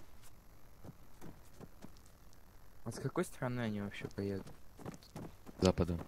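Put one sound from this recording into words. Footsteps patter quickly on a hard rooftop.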